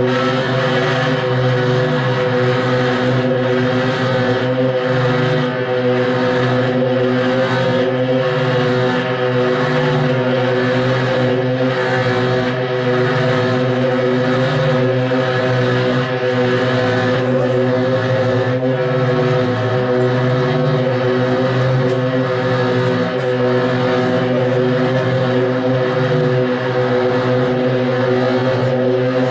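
A loud electric guitar plays distorted rock music through amplifiers.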